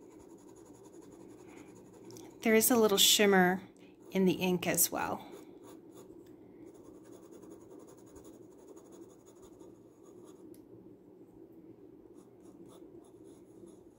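A paintbrush dabs and strokes softly on paper.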